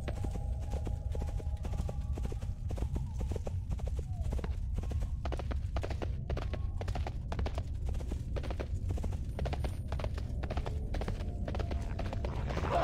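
Quick footsteps patter steadily on a dirt path.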